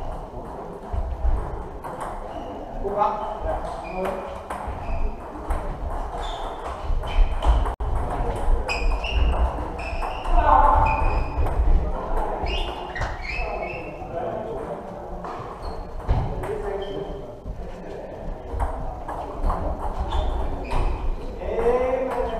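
Several men talk in the background.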